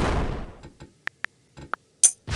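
Keyboard keys click as letters are typed.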